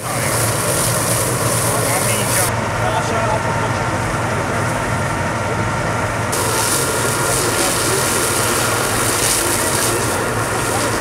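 A fire hose sprays a strong jet of water, hissing steadily.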